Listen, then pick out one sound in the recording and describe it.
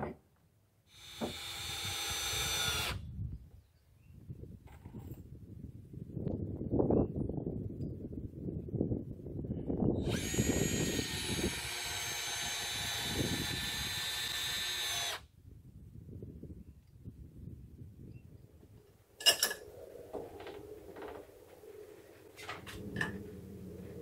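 A power drill whirs in short bursts, outdoors.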